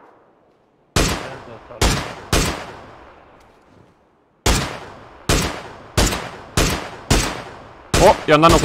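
A rifle fires single shots, each followed by a short echo.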